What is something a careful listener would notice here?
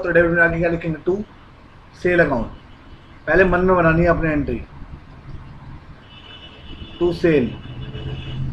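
A young man speaks calmly into a close microphone, explaining.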